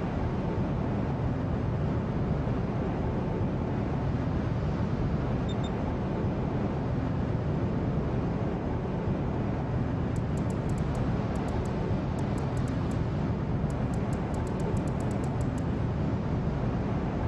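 A warship's engines rumble low.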